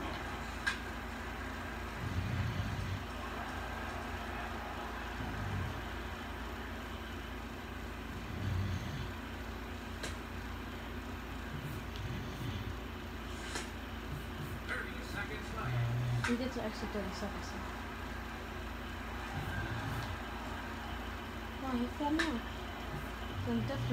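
A baseball video game plays through a television.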